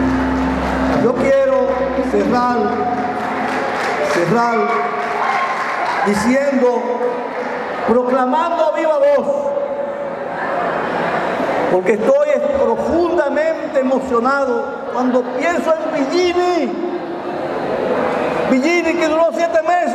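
An elderly man speaks steadily into a microphone, heard through loudspeakers.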